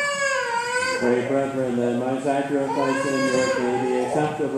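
A congregation sings together in a large echoing hall.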